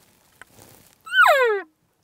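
A man blows a short, falling elk call.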